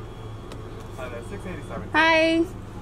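A young woman calls out loudly nearby.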